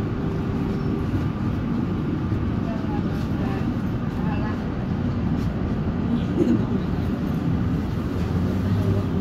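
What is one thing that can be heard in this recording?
A vehicle rumbles steadily from inside while driving along a street.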